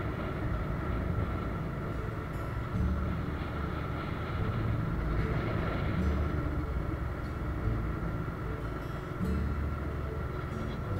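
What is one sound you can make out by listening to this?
Wind rushes and buffets against the microphone.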